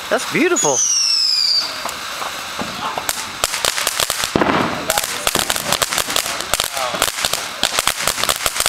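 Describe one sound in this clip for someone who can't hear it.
A firework fountain hisses and sprays sparks.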